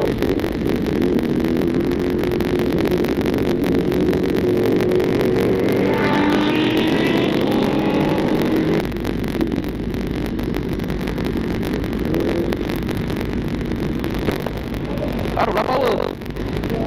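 A motorcycle engine revs and roars up close.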